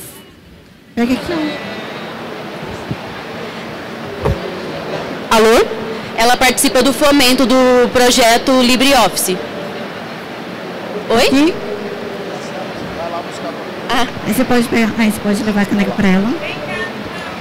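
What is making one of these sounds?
A young woman speaks into a microphone over loudspeakers in a large echoing hall.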